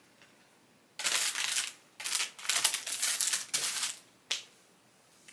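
Plastic packaging rustles and crinkles close by.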